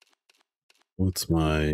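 A man talks into a microphone close by.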